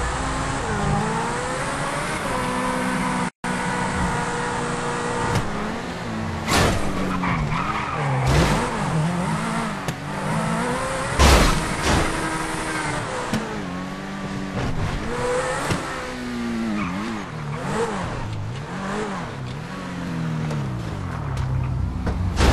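A sports car engine roars and revs up and down as the car speeds along.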